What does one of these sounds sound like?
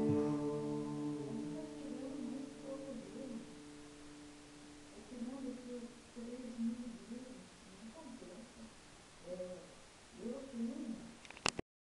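An acoustic guitar is strummed and picked close by, in slow, ringing notes.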